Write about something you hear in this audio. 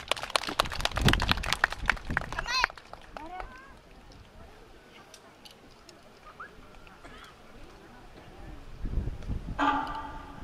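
Wooden hand clappers clack sharply in quick bursts outdoors.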